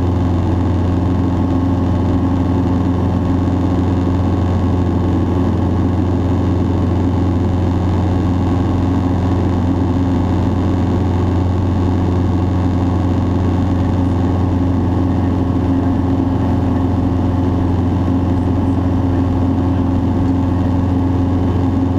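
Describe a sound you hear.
A small propeller plane's engine drones loudly and steadily from inside the cabin.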